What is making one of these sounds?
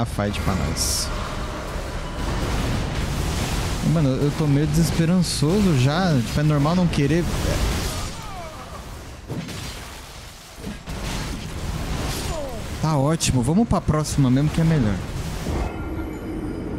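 Game battle sounds rumble and crash loudly.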